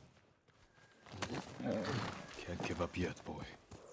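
Horse hooves clop on a dirt path.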